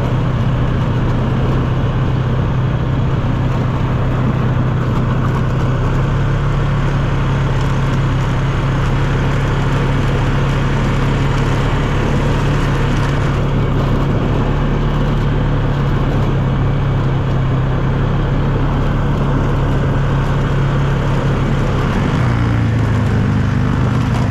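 An ATV engine drones steadily up close, changing pitch near the end.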